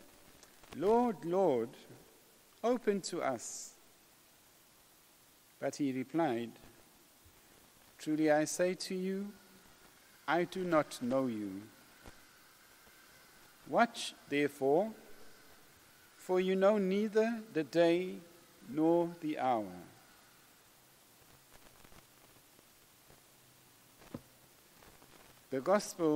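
A man speaks slowly and calmly into a microphone, with pauses, in a room with a slight echo.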